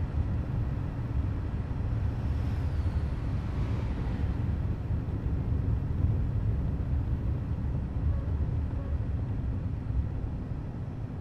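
Tyres rumble over a rough gravel road.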